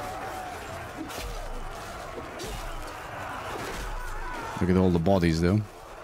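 Weapons clash and clang in a crowded battle.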